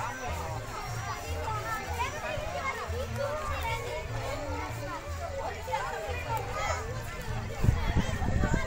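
A crowd of children chatter and call out nearby, outdoors.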